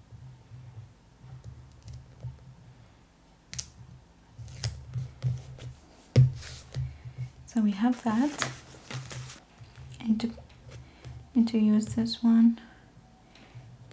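Paper rustles and crinkles under fingers.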